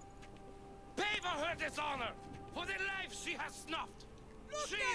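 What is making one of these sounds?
A man speaks forcefully.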